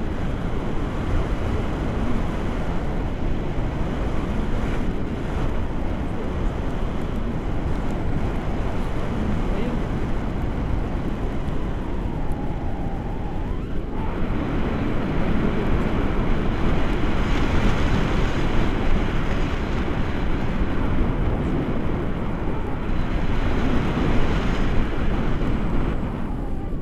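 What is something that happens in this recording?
Wind rushes loudly and steadily past, as if in flight high in the open air.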